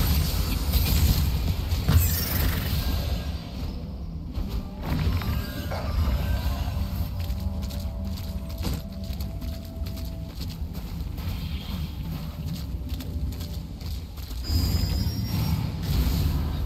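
Fire spells roar and crackle in bursts.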